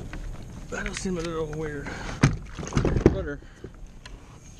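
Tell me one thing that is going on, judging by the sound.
A plastic pedal unit clatters against a kayak hull.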